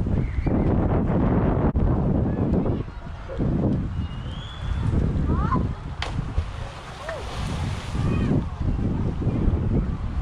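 Water laps and splashes against rocks.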